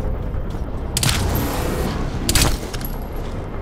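A rifle fires with a sharp, loud crack.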